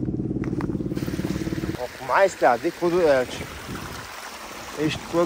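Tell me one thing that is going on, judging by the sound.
Water trickles over rocks nearby.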